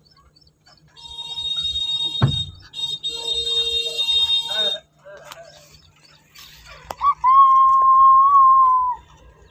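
A car horn honks several times.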